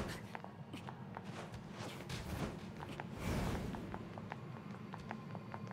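Quick footsteps tap on hard stone.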